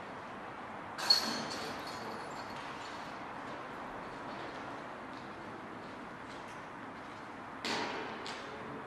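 A flying disc clatters into hanging metal chains.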